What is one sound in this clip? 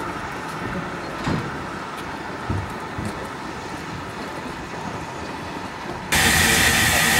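A steam locomotive chuffs slowly.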